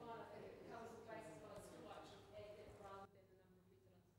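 A man speaks calmly through a microphone.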